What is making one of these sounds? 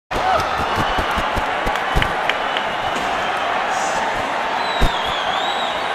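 A large crowd cheers and screams.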